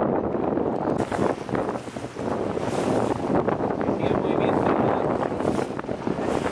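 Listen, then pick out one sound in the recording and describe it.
Wind rushes and flaps the sails of small boats.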